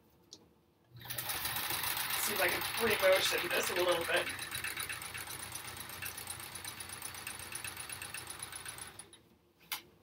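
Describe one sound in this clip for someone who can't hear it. A sewing machine runs, stitching rapidly.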